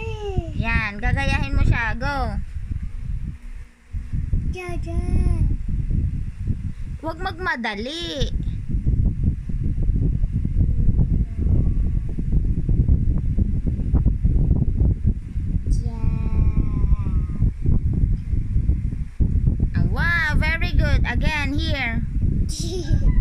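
A young child speaks in a high voice, close by.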